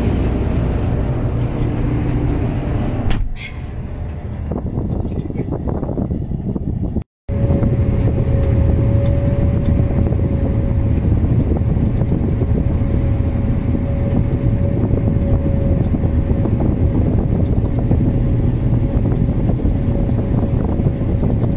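A combine harvester's engine drones, heard from inside the cab while it cuts wheat.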